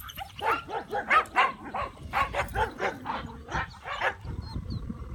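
A young dog yelps and barks repeatedly close by.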